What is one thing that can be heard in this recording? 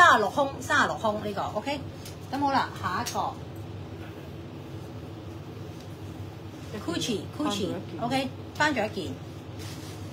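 A woman talks with animation close to a phone microphone.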